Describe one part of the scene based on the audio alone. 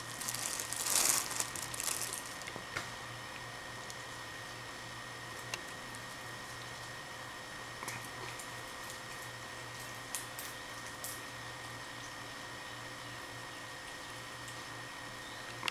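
A cat chews on leaves.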